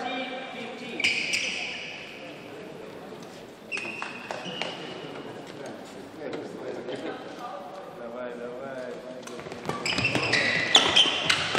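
Sports shoes squeak on a hard court floor.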